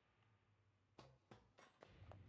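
Footsteps clack on a hard stone floor.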